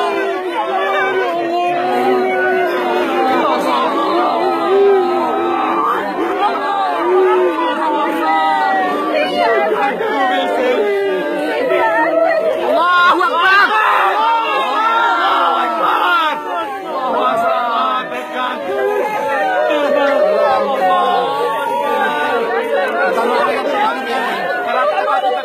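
A group of men wail and chant close by.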